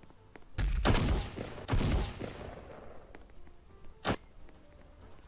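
Gunshots boom and echo.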